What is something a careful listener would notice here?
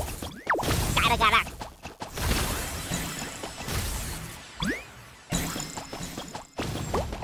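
Playful cartoon sound effects chirp and swoop in quick glides.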